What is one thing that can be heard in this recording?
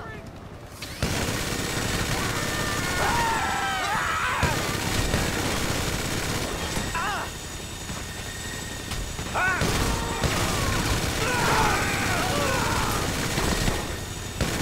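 A minigun fires in long rapid bursts.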